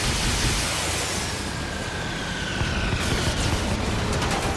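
Flares whistle as they rise and fall.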